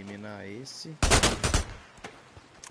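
A gunshot bangs sharply.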